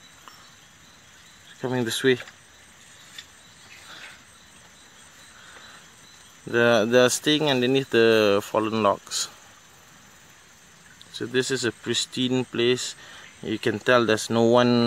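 Shallow water trickles gently over a stream bed.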